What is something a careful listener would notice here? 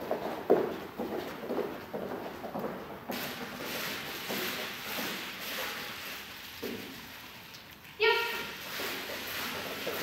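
A woman speaks calmly to dogs nearby.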